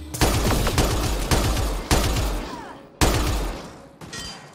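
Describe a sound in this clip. Rapid gunfire blasts in bursts, ringing out after each shot.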